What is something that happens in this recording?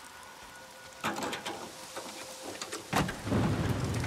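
A car hood clunks open with a metallic thud.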